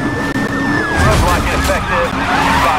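A car crashes through a roadblock with a loud smash.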